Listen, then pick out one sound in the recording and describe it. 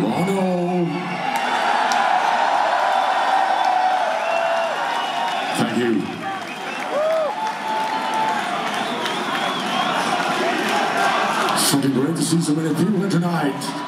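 A large crowd cheers and screams loudly in a big hall.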